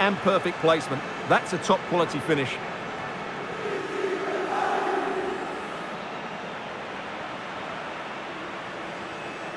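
A stadium crowd roars steadily, swelling briefly.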